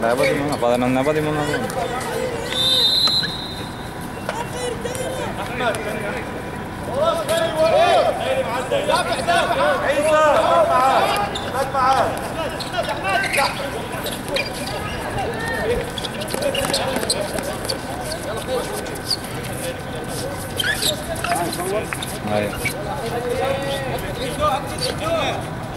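A crowd of spectators talks and shouts outdoors.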